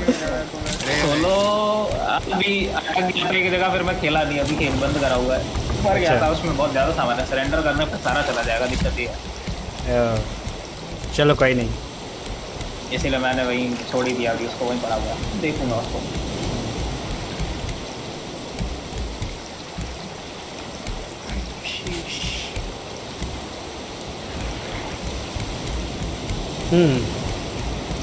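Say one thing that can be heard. Sea water laps softly all around.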